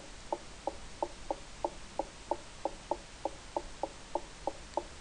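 Footsteps tap quickly and evenly on a wooden floor.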